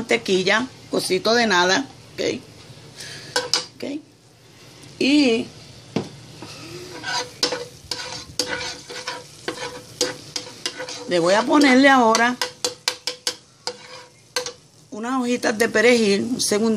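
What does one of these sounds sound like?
Butter sizzles softly in a hot pan.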